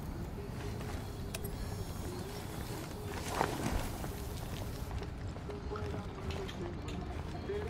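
Boots step softly on stone.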